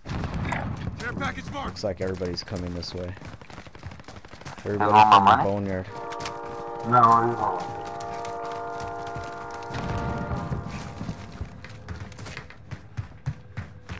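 Footsteps run over dirt and hard ground.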